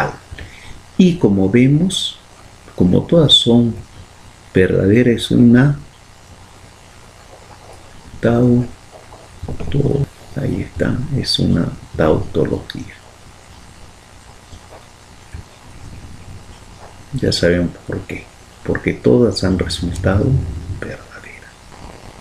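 A man speaks calmly into a close microphone, explaining.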